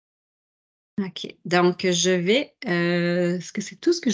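A woman speaks with animation over an online call.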